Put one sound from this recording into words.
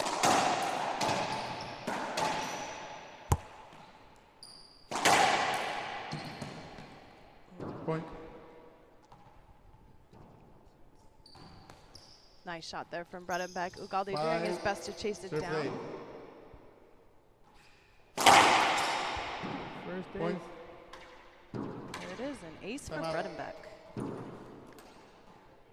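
A racquetball smacks sharply off the walls, echoing in a large hard-walled court.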